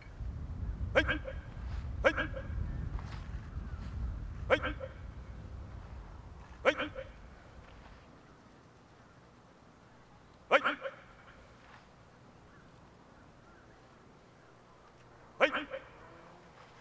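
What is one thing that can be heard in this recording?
A group of men shout together in sharp bursts, heard from across an open field.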